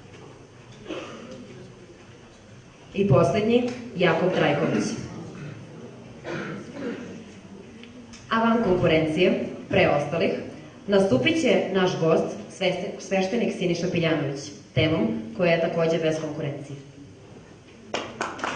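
A young woman reads out through a microphone.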